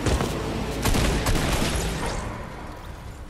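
A car engine roars loudly, then dies away.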